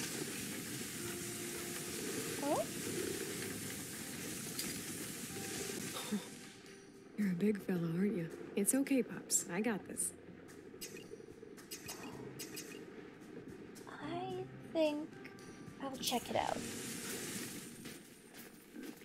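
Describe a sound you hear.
A dog sled's runners hiss over snow.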